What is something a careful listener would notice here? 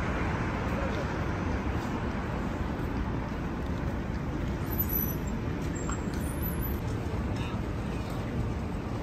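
Steady low city traffic hums outdoors.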